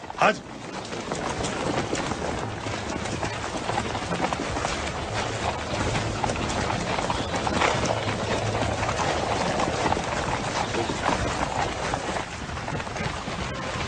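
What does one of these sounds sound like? A crowd of people clamours and moves about outdoors.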